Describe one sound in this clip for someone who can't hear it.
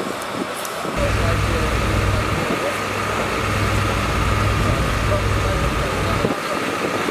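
A hydraulic rescue pump hums loudly and steadily nearby.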